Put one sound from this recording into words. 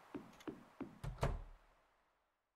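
A door opens and shuts with a thump.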